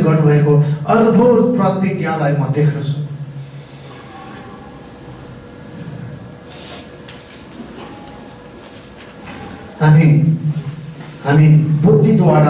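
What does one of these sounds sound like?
A middle-aged man speaks with animation into a microphone in an echoing room.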